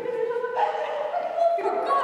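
A woman speaks with animation in an echoing hall.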